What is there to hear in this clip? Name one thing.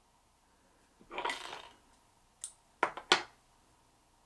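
Fingers handle a small fishing fly with faint rustling and clicks.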